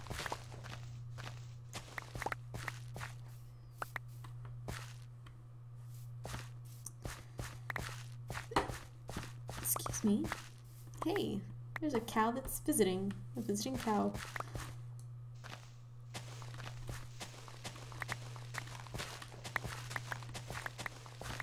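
A shovel digs into dirt with repeated soft crunches.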